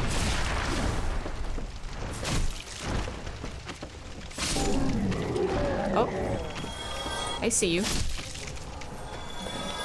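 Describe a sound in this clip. A sword slashes and strikes a creature.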